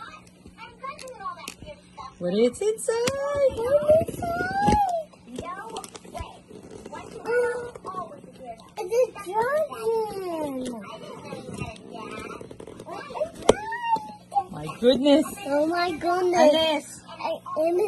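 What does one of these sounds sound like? Fingers rub and press on a cardboard box.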